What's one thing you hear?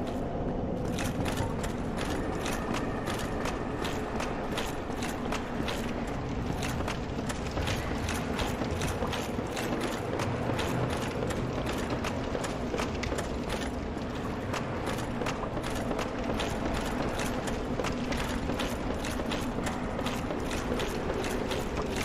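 Armoured footsteps run quickly on stone and wooden planks.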